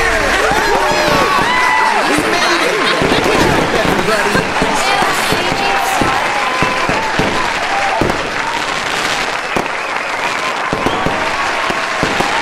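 Fireworks whistle as they rise.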